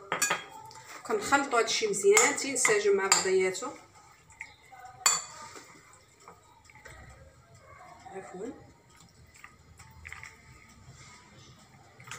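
A spoon stirs a thick salad in a glass bowl, clinking against the glass now and then.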